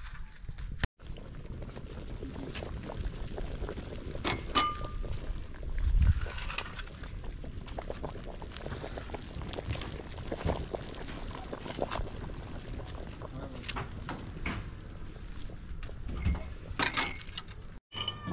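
A pot of stew bubbles and simmers.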